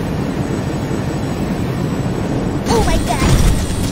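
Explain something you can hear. A jet engine roars with crackling flames.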